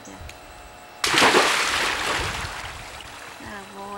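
A boy splashes into water with a loud splash.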